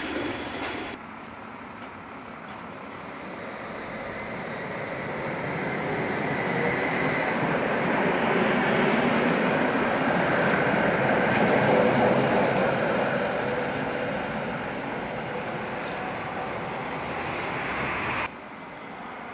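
A tram rumbles past on its rails, growing louder and then fading.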